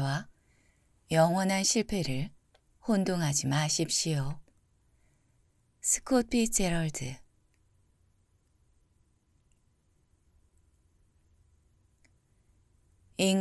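A woman reads aloud calmly and closely into a microphone, with long pauses.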